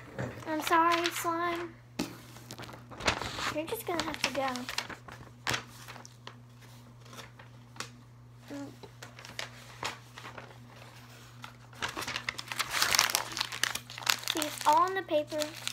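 Paper rustles as it is waved and crumpled.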